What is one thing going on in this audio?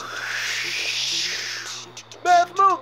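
A jet engine roars past.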